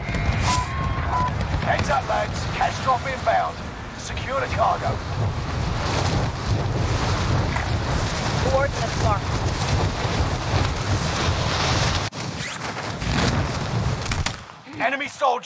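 Wind rushes loudly and steadily, then cuts off.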